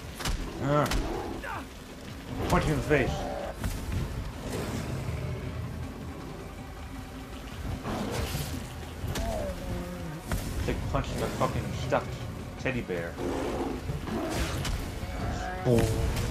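A large beast growls and roars up close.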